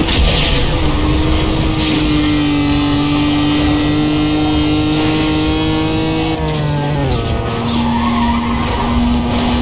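A racing car engine roars at high speed, its pitch dipping briefly as it shifts gear.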